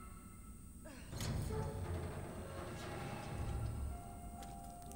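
A heavy metal valve wheel grinds and creaks as it turns.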